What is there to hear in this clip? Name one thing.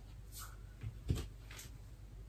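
A hand taps against a wall.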